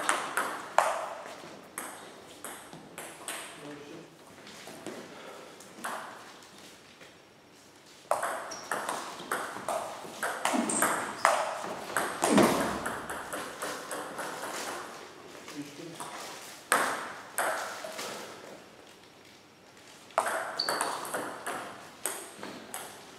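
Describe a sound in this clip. A table tennis ball clicks sharply back and forth off bats and the table in a large echoing hall.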